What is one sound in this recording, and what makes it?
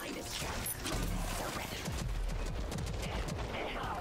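A gun fires with loud bursts and explosions.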